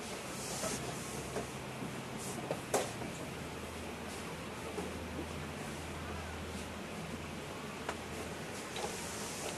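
Chess pieces click softly onto a wooden board.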